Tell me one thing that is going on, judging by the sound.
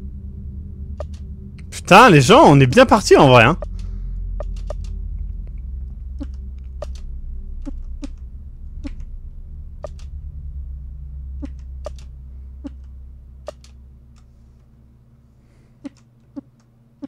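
Short electronic menu blips sound again and again.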